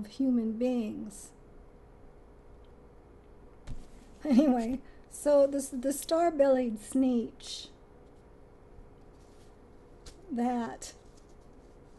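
A woman talks calmly and warmly, close to the microphone, in short bursts with pauses.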